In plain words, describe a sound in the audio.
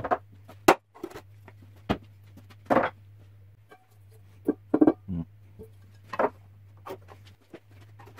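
Wooden boards knock and tap as they are handled.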